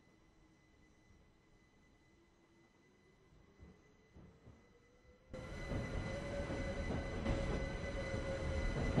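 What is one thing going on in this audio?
An electric train motor whines, rising in pitch as it speeds up.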